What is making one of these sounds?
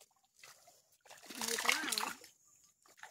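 Water splashes as a fish is pulled from the surface.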